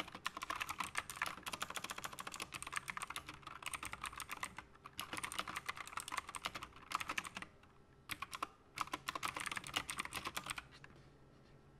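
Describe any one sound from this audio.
Keys clatter rapidly on a mechanical keyboard.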